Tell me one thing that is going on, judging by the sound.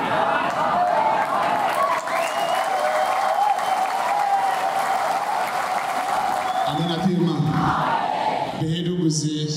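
A large crowd prays and sings loudly together.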